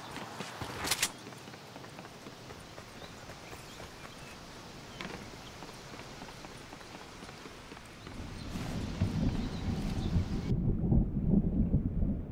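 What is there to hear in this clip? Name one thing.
Footsteps thud on wooden stairs and planks.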